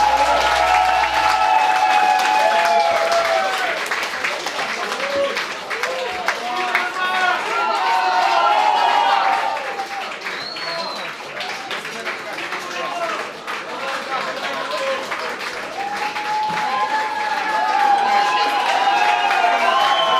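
A live rock band plays loudly.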